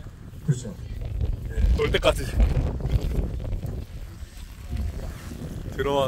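Several men talk among themselves nearby, outdoors.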